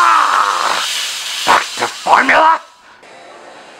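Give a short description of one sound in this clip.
A woman gasps and chokes.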